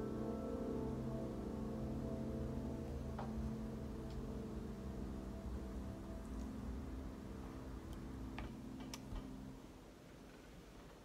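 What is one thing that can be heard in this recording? Several pianos play a chord together that slowly rings out and fades.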